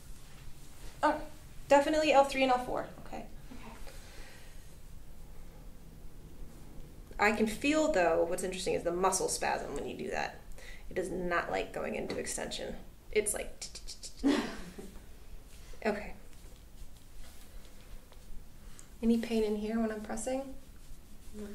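A young woman speaks calmly and clearly close by.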